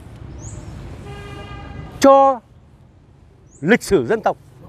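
A middle-aged man speaks animatedly close by.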